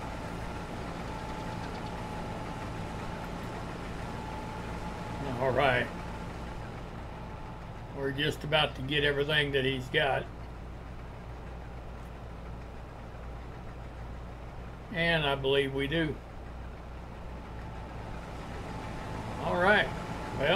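A combine harvester's engine hums steadily.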